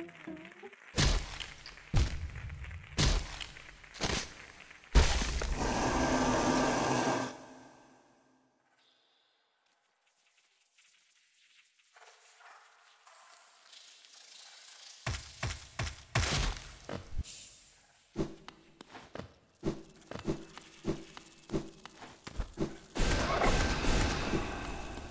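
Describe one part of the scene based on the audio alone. Video game sound effects thud and clash in sharp bursts.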